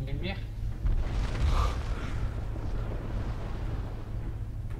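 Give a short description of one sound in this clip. An explosion bursts and crackles.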